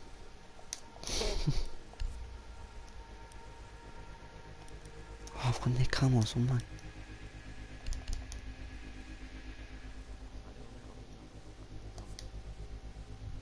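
Game menu sounds click and swoosh as menus open and close.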